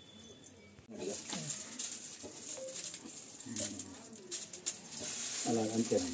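Crumpled paper banknotes rustle as hands sift through them.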